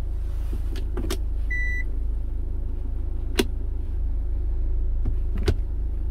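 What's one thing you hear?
A gear lever clicks into place.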